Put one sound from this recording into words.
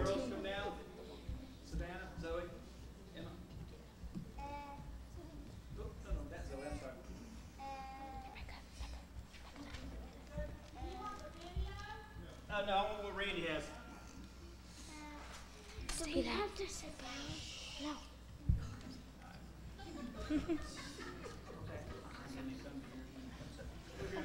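A children's choir sings together in a large hall.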